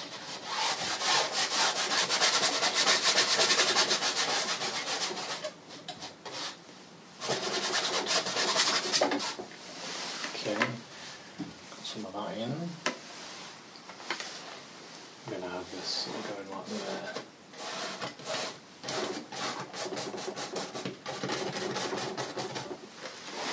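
A brush scrubs against a canvas.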